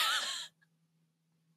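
A young woman laughs loudly into a microphone.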